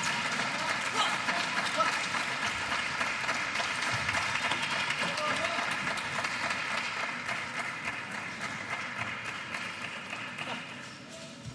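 A crowd in a large hall cheers and murmurs.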